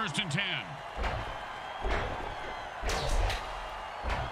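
Armoured players collide with heavy thuds.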